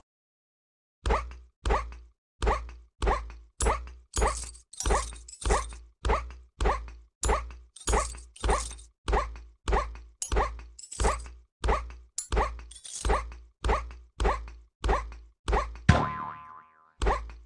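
A cartoon character bounces with a springy boing again and again, at an even pace.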